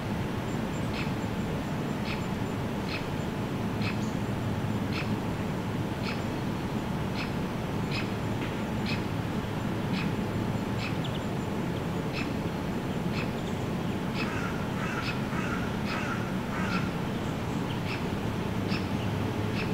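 A jet airliner rumbles faintly high overhead.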